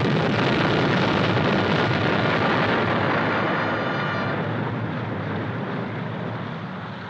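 Waves rush over open water in the wind, slowly fading.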